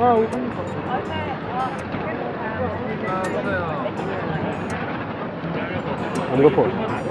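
Men and women chatter nearby on a busy street.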